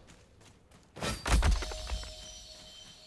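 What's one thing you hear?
A loud whooshing burst sweeps past with a heavy thump.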